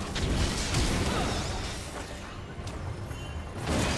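Fiery magic blasts whoosh and crackle in a fight.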